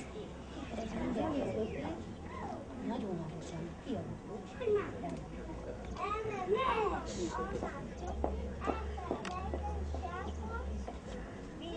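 Young children chatter and call out nearby, outdoors.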